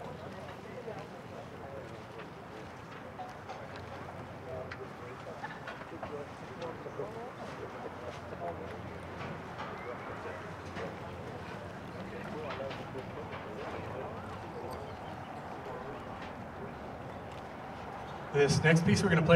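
A crowd of adults murmurs quietly outdoors.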